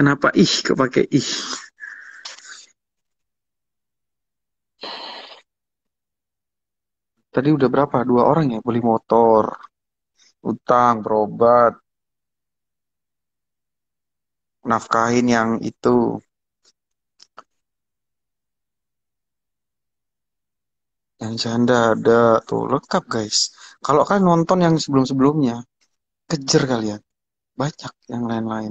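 A young man talks calmly and close to a phone's microphone, in short bursts with pauses.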